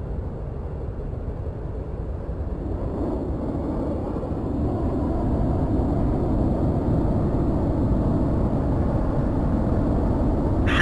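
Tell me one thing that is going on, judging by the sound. A jet engine roars steadily and grows louder as the aircraft speeds down a runway.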